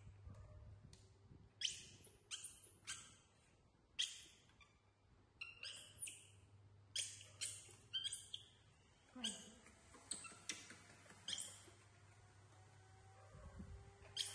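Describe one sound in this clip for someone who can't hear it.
A young monkey squeaks.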